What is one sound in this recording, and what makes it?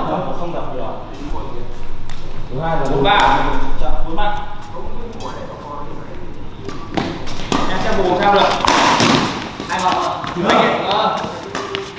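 Badminton rackets strike a shuttlecock back and forth.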